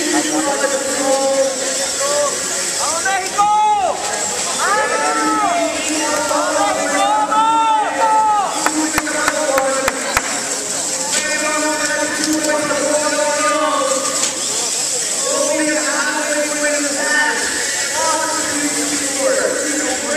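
A crowd of young people chatters and cheers loudly in a large echoing hall.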